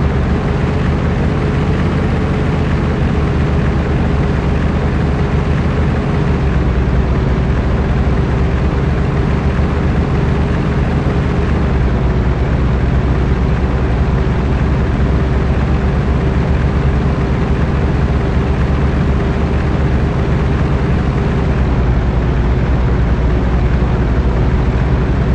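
A truck engine rumbles steadily, with a low, even drone.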